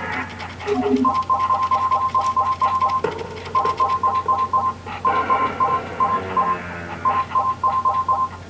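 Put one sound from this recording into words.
Electronic menu beeps repeat in quick bursts.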